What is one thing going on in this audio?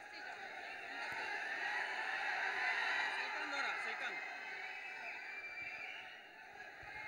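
A large crowd murmurs and cheers in a big hall.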